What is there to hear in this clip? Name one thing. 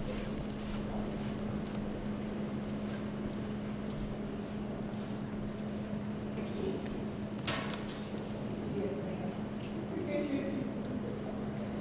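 Men and women murmur and talk quietly in a large echoing hall.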